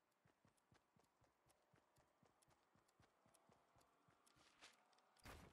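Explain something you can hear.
Running footsteps thud on grass.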